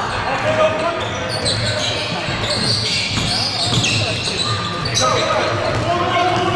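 A basketball bounces rhythmically on the court.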